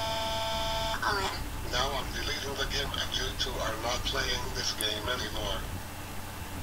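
A boy speaks angrily in a flat, synthetic voice.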